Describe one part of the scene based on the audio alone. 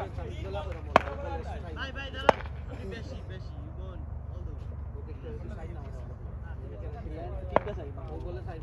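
A cricket bat sharply cracks against a ball.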